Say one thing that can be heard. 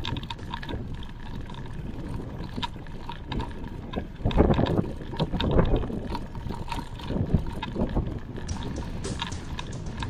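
Bicycle tyres hum and rattle over rough pavement.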